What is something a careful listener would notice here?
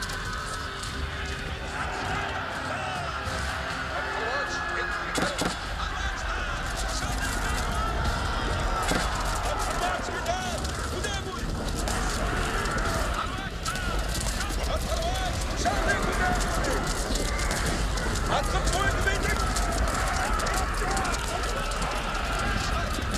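A large army marches with a steady rumble of many footsteps.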